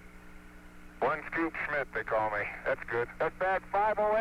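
A man speaks calmly over a crackly radio link.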